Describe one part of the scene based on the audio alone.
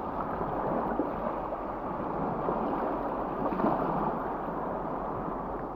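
Small waves lap and splash gently at the water's edge.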